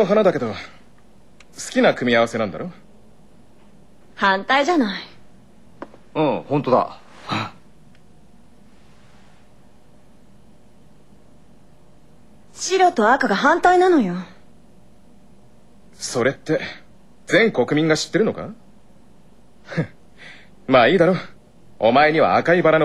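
A young man speaks.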